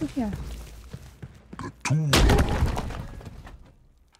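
Weapons clash and strike in a brief fight.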